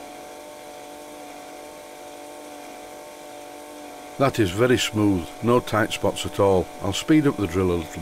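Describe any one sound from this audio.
A small steam engine runs with a soft, steady whirring hum.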